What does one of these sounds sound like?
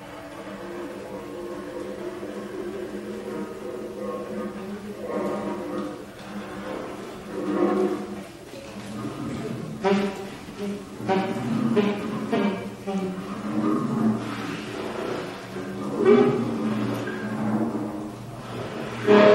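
Drums and cymbals are played with sharp hits.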